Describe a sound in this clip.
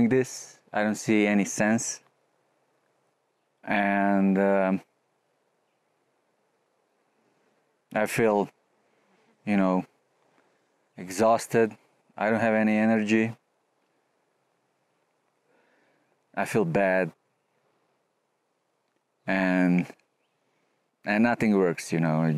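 A middle-aged man speaks calmly into a close microphone, in short bursts with pauses.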